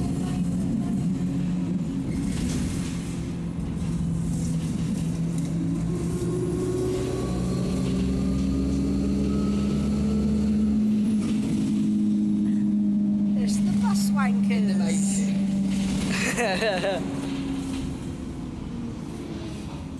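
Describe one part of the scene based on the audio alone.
A bus engine hums steadily, its pitch rising and falling as the bus drives.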